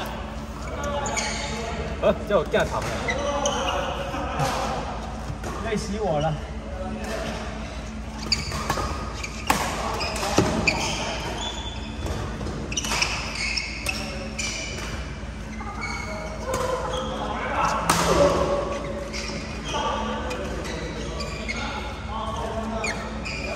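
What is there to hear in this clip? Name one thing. Shoes squeak on a hard court floor.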